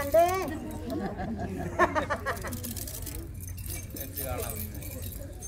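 Men talk and call out loudly nearby, outdoors.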